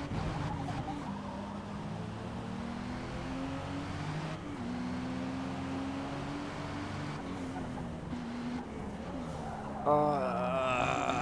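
A sports car engine hums steadily and shifts pitch through the gears.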